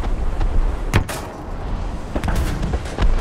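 A shell explodes nearby with a heavy boom.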